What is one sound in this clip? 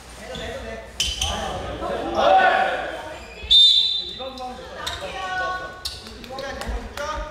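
Young men shout to each other in a large echoing hall.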